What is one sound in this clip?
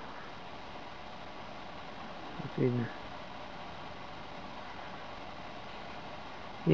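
Wind blows softly through pine branches outdoors.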